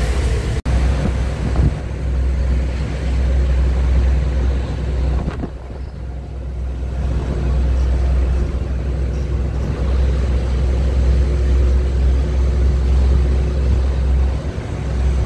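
A heavy truck's diesel engine rumbles steadily while driving.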